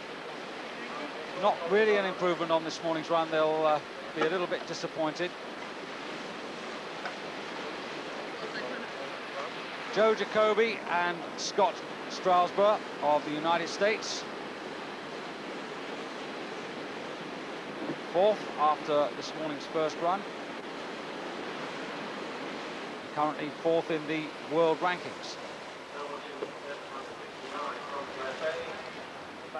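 Whitewater rushes and churns.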